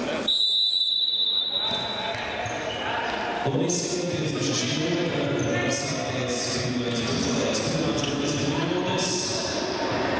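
Sneakers squeak on a hard court in an echoing hall.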